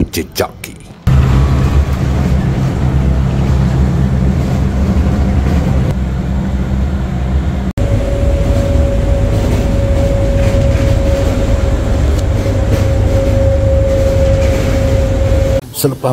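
A train rumbles steadily along, heard from inside.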